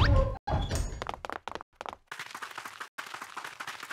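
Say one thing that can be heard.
Quick footsteps patter away.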